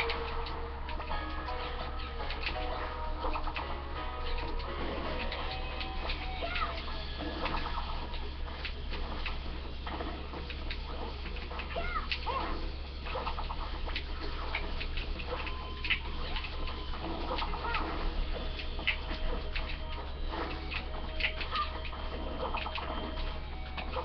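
Game sound effects of hits and blasts pop and crackle throughout.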